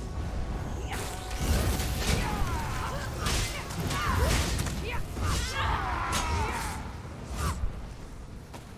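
Swords and blades clash and strike in a fight.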